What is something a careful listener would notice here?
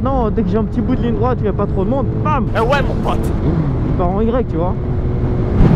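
A motorcycle engine revs up and down sharply.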